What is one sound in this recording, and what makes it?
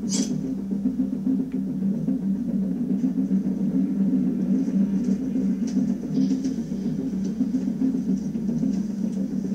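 A low, steady droning sound plays through a television loudspeaker.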